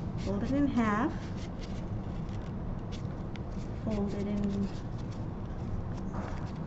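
Paper rustles and crinkles softly.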